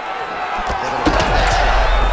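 A punch lands with a sharp thud.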